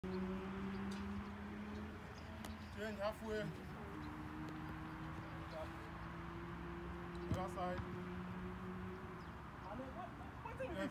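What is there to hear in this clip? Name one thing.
A football is kicked with dull thuds on grass.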